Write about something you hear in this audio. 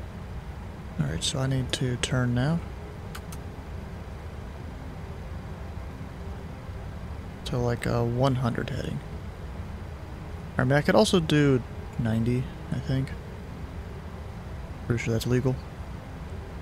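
A young man speaks casually into a close microphone, in short bursts.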